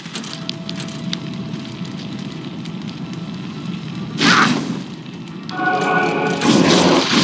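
Weapons clash and bones rattle in a fight.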